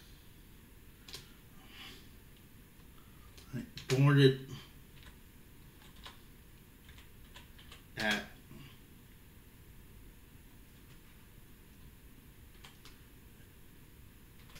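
Keys click softly on a keyboard.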